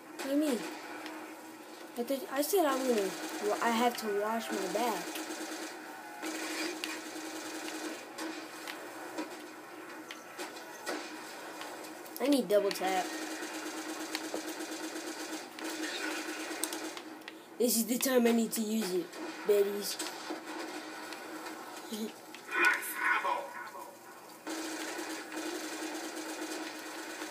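Gunfire crackles from a video game through a speaker.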